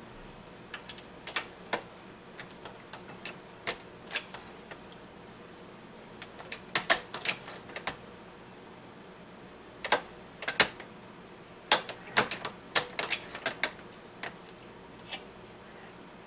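A reloading press lever clanks and clicks as it is worked.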